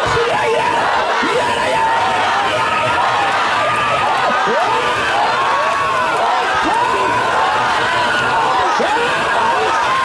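A large crowd of men and women sings and chants loudly together outdoors.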